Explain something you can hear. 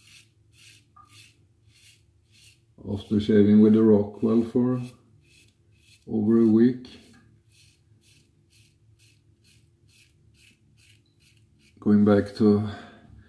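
A razor scrapes across stubble in quick, regular strokes.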